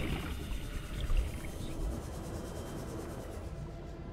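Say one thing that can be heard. A scanning tool hums steadily.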